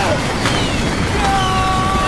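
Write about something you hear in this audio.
A young man shouts fiercely.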